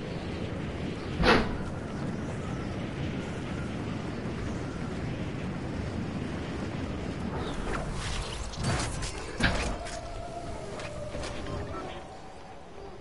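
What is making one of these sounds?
Wind rushes steadily past a gliding game character.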